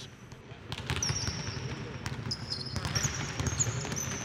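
Sneakers squeak sharply on the court floor.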